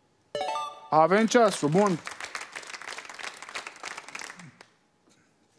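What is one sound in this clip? A small group of people claps and cheers.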